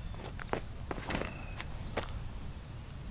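Feet step briskly on grass during a run-up.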